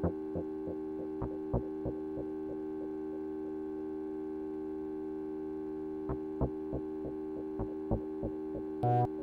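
A modular synthesizer plays rhythmic plucked notes that pulse and echo.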